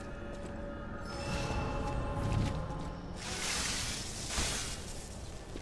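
A shimmering chime rings out.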